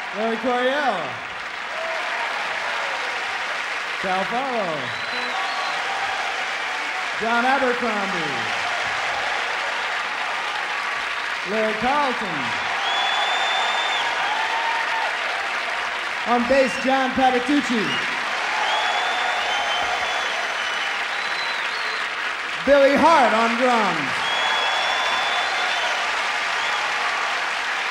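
A large audience applauds and cheers steadily in a big hall.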